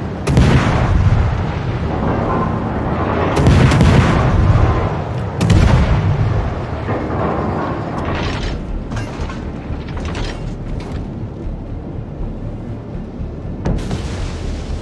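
Ship guns fire with sharp loud bangs.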